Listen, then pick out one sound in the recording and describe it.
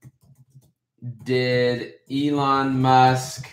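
A young man speaks close to a microphone, loud and drawn out, with animation.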